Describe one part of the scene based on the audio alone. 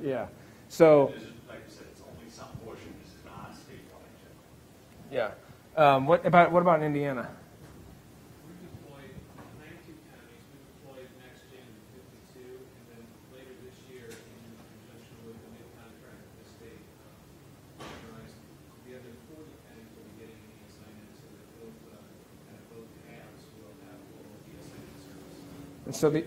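A middle-aged man speaks calmly into a microphone, heard through loudspeakers in a large hall.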